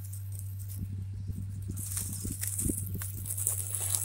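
Leaves rustle close by.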